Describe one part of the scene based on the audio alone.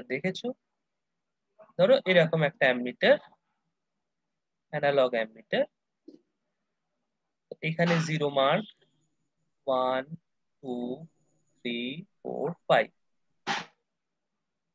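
A man speaks calmly and close to a microphone.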